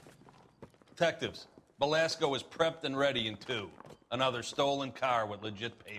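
A middle-aged man speaks calmly and clearly.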